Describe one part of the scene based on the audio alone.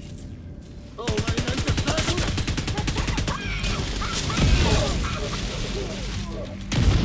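Rapid gunfire rattles loudly in an echoing space.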